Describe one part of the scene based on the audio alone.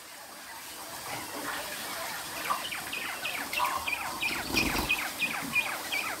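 Caged birds chirp rapidly and repeatedly nearby.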